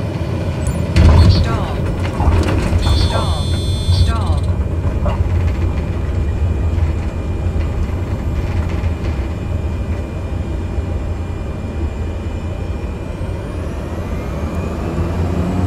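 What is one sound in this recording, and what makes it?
Tyres rumble on a runway.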